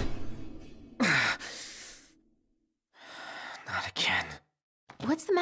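A young man groans and murmurs wearily.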